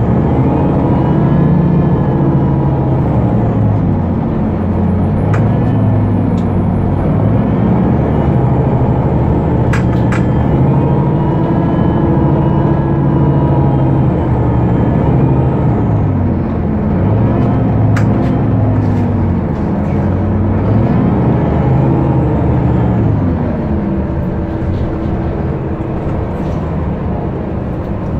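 A city bus's automatic gearbox shifts gears, making the engine pitch rise and drop.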